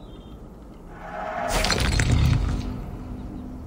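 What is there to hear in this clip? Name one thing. A bright whooshing chime sounds.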